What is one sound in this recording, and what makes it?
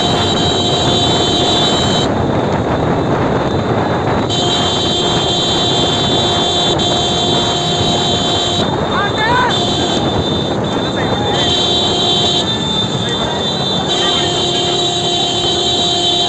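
A crowd of men shouts and cheers along the track.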